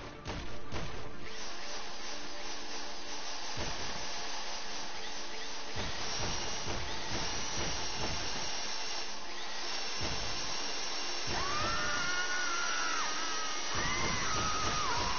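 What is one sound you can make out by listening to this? A power drill whirs steadily as it bores into metal.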